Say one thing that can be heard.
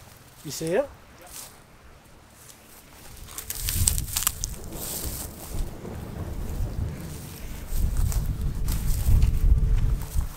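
Wind blows through dry brush.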